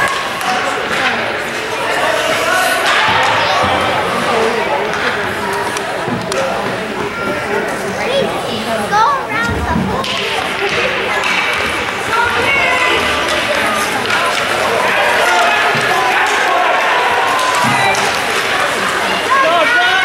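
A crowd of spectators chatters and cheers in a large echoing rink.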